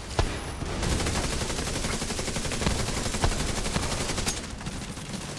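Rapid gunfire rattles in a fast burst.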